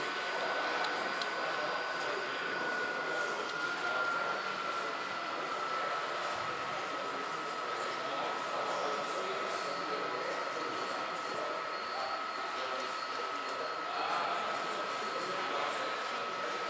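A small electric motor whines steadily as a model train rolls along the track.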